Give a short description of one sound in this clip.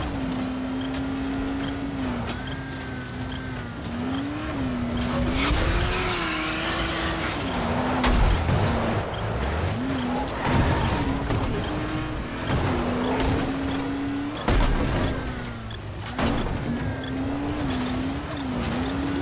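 A buggy engine drones and revs up and down.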